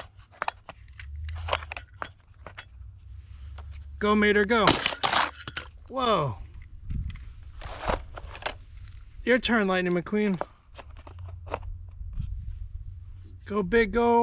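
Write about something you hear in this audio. A toy car clicks into a plastic launcher.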